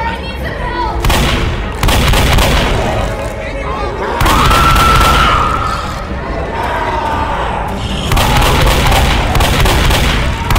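A shotgun fires loud blasts again and again.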